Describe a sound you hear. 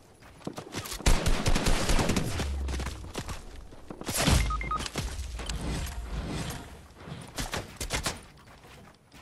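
Gunshots fire in rapid bursts in a video game.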